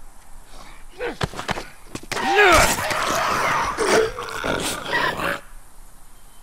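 A man grunts and strains close by during a struggle.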